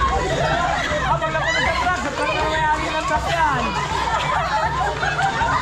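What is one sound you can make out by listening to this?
A crowd of men and women shout and cheer excitedly nearby, outdoors.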